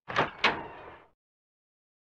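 A wooden door unlatches and swings open.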